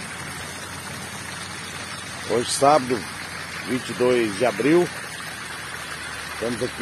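Water gushes and splashes steadily from a broken pipe.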